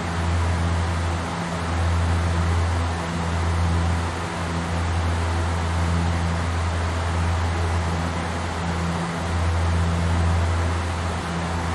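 Aircraft engines drone steadily with a low hum and rushing air.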